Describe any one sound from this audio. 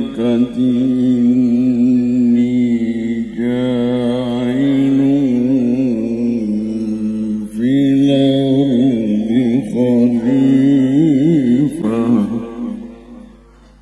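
An elderly man chants in a long, wavering melodic voice through a microphone and loudspeakers.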